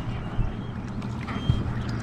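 A fish splashes at the surface of the water.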